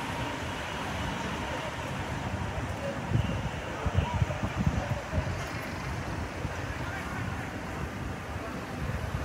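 Wind gusts rumble outdoors.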